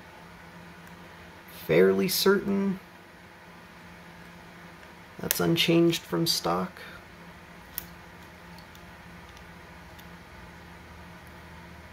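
Small plastic parts click softly as they are handled.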